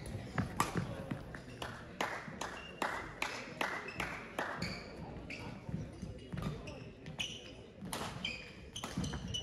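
Shuttlecocks are struck with sharp pops of rackets, echoing in a large hall.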